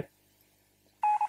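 A short electronic beep sounds.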